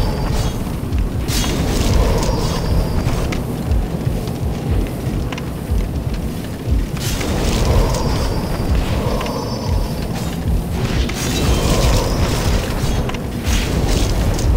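A magic blast bursts with a bright whoosh.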